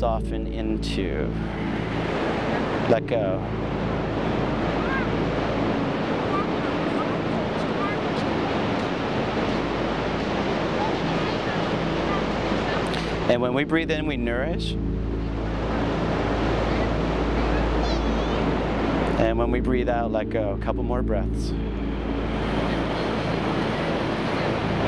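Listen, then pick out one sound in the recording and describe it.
Ocean waves break and wash onto a beach.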